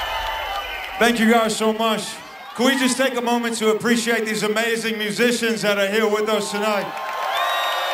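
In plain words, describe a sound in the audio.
A young man sings through a microphone over the music.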